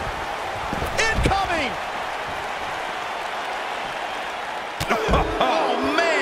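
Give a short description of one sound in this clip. A body slams hard onto the floor with a heavy thud.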